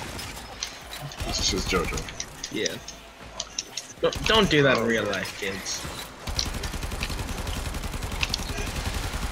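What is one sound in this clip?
Gunfire rattles rapidly in a video game.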